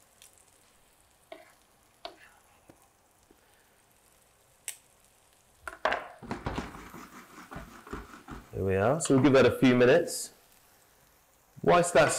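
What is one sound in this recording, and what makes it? Oil sizzles softly in a pan.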